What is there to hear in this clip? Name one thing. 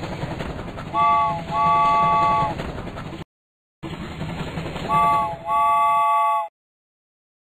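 A toy train whistle toots twice.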